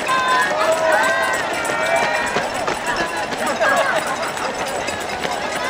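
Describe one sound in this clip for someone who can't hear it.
A crowd of spectators cheers and shouts nearby, outdoors.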